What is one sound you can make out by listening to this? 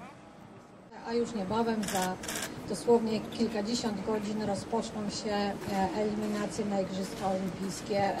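A woman speaks calmly into a microphone through a loudspeaker.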